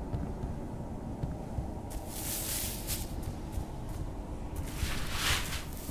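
Footsteps thud quickly over rough ground.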